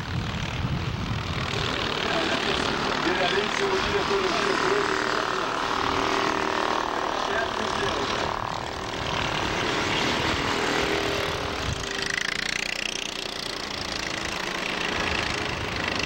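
Go-kart engines buzz and whine as karts race past, rising and falling in pitch.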